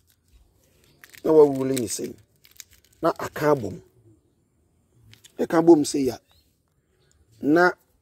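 A stiff leaf rustles softly as hands fold it.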